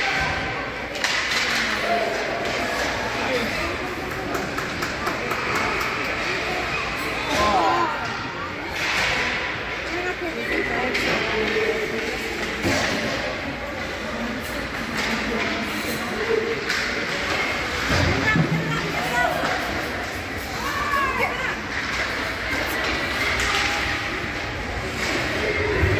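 Skate blades scrape and hiss on ice.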